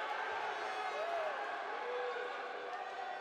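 Sports shoes squeak on a hard court floor.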